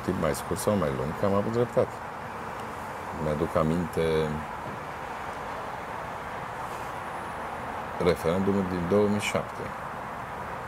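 A middle-aged man speaks calmly in short bursts, close to a microphone.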